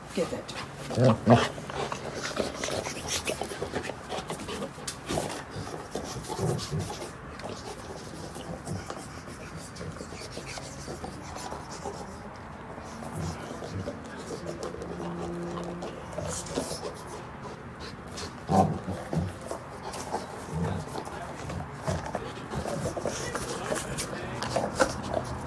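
A dog chews and gnaws on a rubber toy close by.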